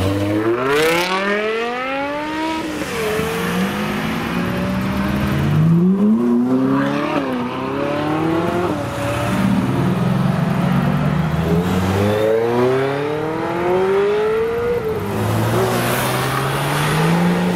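Several car engines rumble and rev loudly, one after another, as cars accelerate away.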